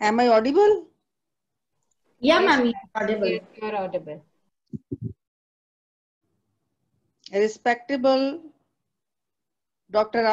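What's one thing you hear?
A middle-aged woman speaks calmly, in short phrases with pauses, heard over an online call.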